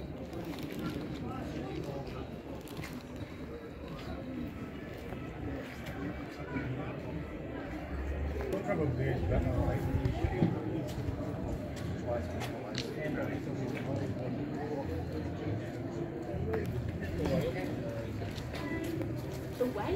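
Men talk quietly nearby, outdoors.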